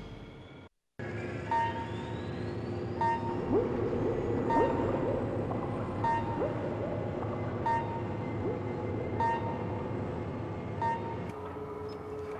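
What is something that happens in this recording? A submarine's engine hums steadily underwater.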